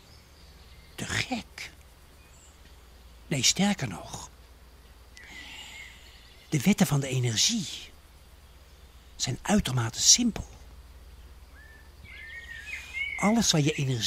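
A man speaks calmly and close to a microphone, with long pauses.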